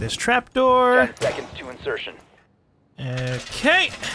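A metal barricade clanks into place.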